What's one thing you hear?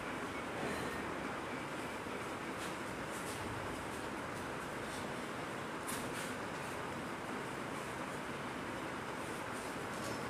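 Metal weight plates clink as they are lifted and set down.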